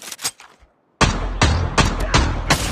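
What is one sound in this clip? Gunshots fire in quick, loud bursts.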